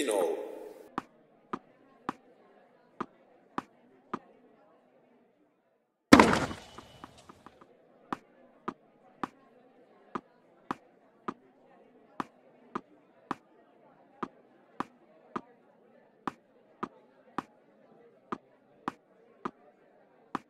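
A tennis ball bounces steadily on a hard court.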